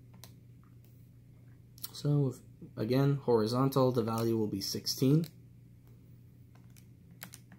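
Plastic calculator buttons click softly as they are pressed.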